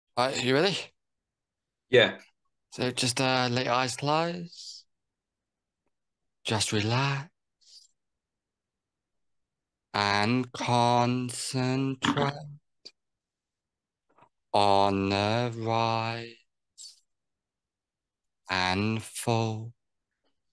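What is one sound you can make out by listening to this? A man speaks calmly in bursts over an online call.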